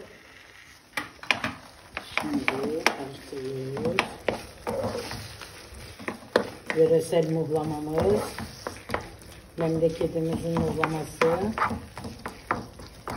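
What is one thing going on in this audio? A wooden spoon stirs and scrapes in a pan of thick sauce.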